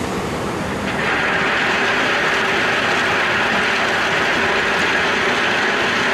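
Gravel pours and rattles out of a tipping truck bed.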